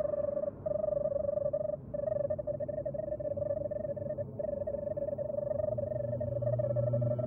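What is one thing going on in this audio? Rapid electronic blips chirp in a quick stream, with brief pauses.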